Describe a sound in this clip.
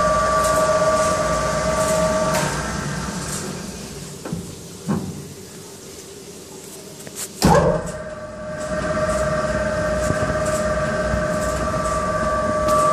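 A metal drum spins with a steady, whining machine hum that stops and then starts again.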